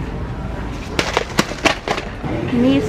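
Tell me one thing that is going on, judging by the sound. A shopping cart rattles as it rolls.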